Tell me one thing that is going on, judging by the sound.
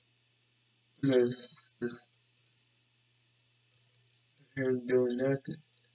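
A man speaks briefly and calmly into a microphone, close by.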